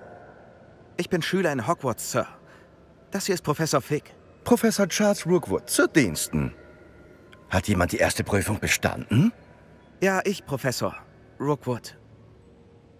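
A young man speaks calmly and clearly.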